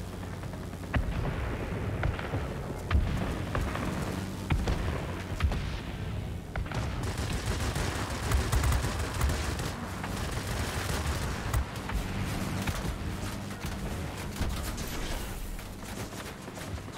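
Machine guns rattle in bursts.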